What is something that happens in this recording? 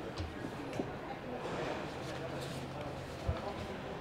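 Paper sheets rustle.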